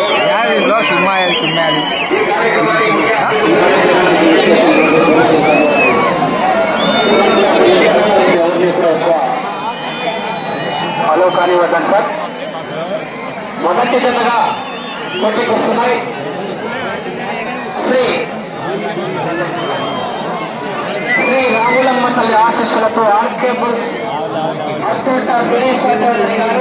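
A large outdoor crowd shouts and cheers loudly.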